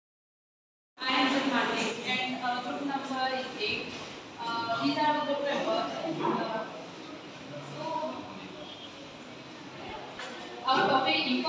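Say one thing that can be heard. A young woman speaks calmly in a room with a slight echo.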